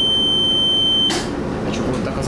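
A train door slides shut with a thud.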